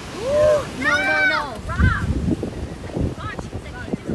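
A person splashes into the sea.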